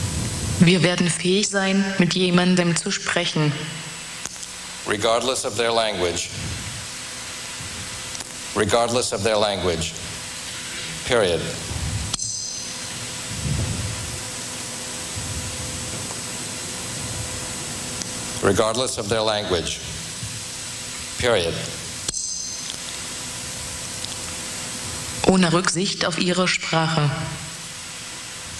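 A man speaks calmly into a headset microphone, in short phrases with pauses.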